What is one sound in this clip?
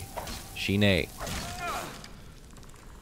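A magic spell crackles and hisses.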